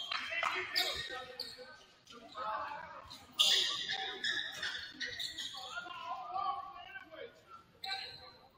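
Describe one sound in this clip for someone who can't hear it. Young women shout and call out in an echoing gym.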